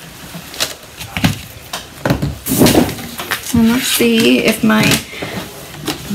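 A paper stencil peels off a sheet with a soft rustle.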